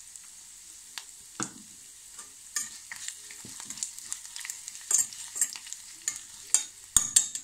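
A spoon scrapes and clinks against a metal pan.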